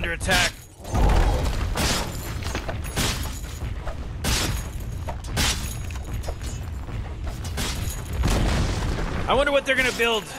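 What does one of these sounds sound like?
Blows and blasts land with sharp, repeated cracks and rumbles.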